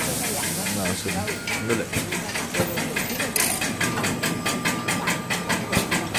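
A lumpia wrapper machine runs with rhythmic clicking.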